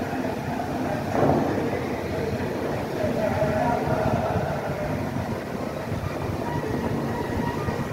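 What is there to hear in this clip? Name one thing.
Fountain jets of water spray and splash.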